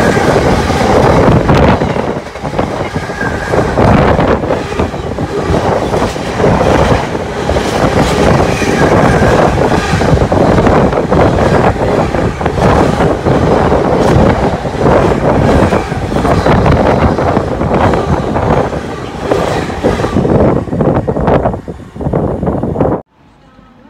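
A freight train rushes past close by with a loud rumbling roar.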